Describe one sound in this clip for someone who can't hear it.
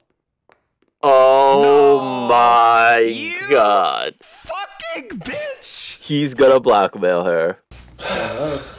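A young man exclaims with animation into a microphone.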